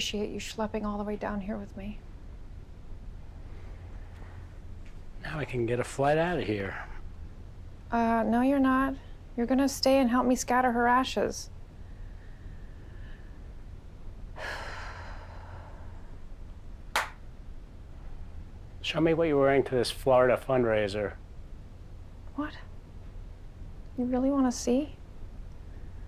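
A woman speaks close by in a weary, sarcastic tone.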